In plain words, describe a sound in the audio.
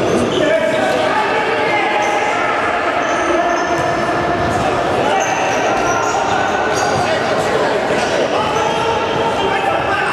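A ball is kicked with dull thuds on a hard indoor floor.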